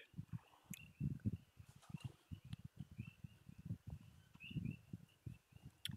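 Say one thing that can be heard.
A man sips and gulps a drink.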